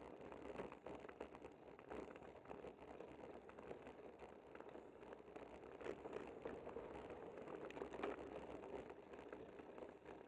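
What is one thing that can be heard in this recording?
Wind rushes steadily over a microphone.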